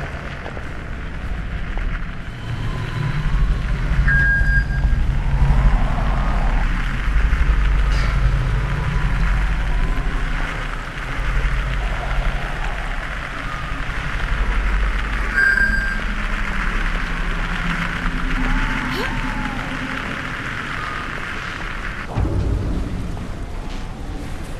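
Footsteps tread on a stone wall.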